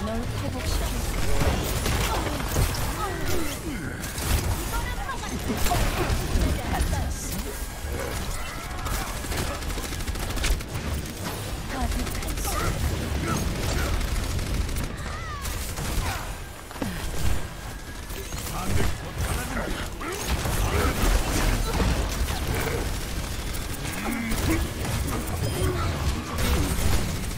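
Gunfire and weapon blasts crackle in quick bursts.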